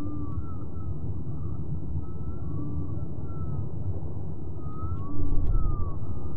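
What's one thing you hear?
A deep engine hum drones steadily.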